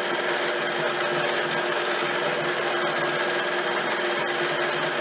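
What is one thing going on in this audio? A sewing machine hums and its needle stitches rapidly and steadily.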